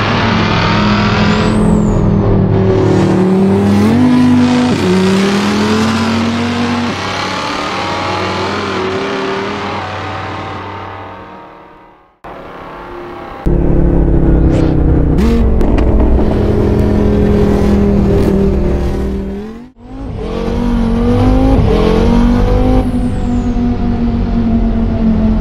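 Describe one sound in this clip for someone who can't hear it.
A car engine roars loudly, rising and falling in pitch.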